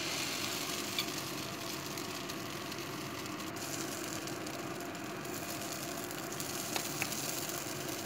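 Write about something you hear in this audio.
A metal spoon clicks against a pan.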